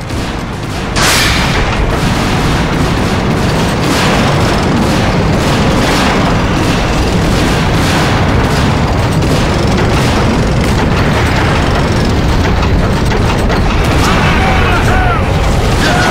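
A tank engine rumbles loudly.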